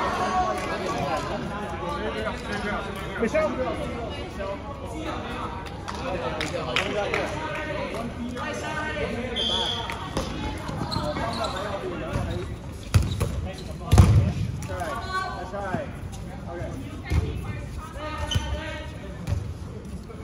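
Young men and women talk and call out across a large echoing hall.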